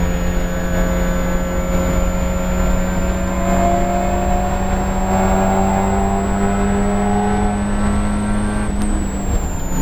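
A four-cylinder Spec Miata race car accelerates at full throttle, heard from inside the cabin.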